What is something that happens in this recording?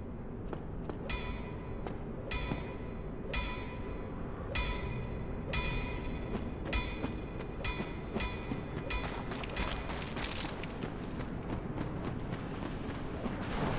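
Armoured footsteps clink on stone.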